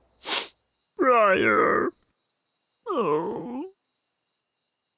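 A sloth snores and mumbles in its sleep.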